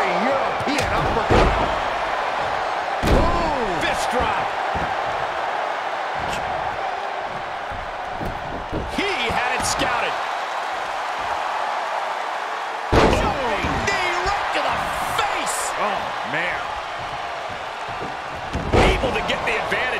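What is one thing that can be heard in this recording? Bodies slam heavily onto a wrestling mat with loud thuds.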